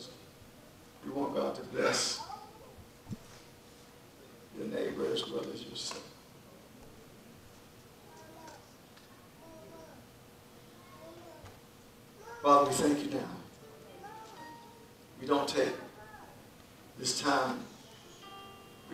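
A man speaks through a microphone in a slow, measured preaching voice, with long pauses, in an echoing hall.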